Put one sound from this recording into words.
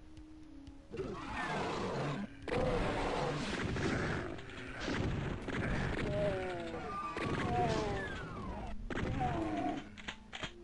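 Gunshots boom in rapid bursts.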